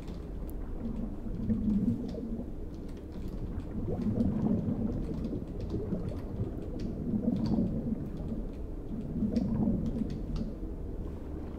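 Swimming strokes swish softly through water in slow pulses.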